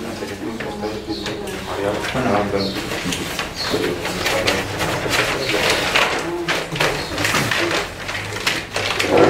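Several men talk over one another nearby.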